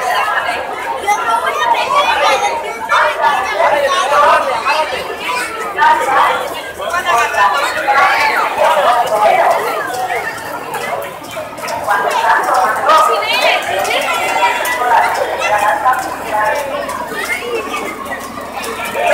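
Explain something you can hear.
A crowd of people chatter and shout loudly all around outdoors.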